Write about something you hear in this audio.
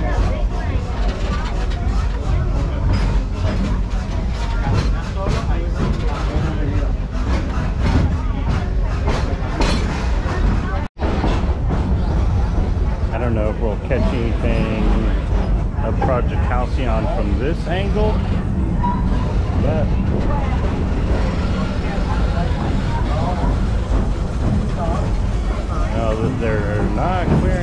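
A small open train rumbles and clatters along its tracks.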